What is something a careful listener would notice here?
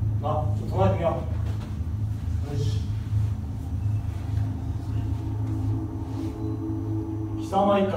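Young men shuffle and kneel on a floor.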